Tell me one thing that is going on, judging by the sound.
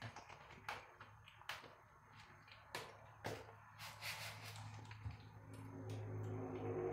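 A kitten's claws tap softly on a tiled floor.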